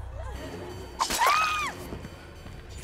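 A blade slashes into a body with a wet thud.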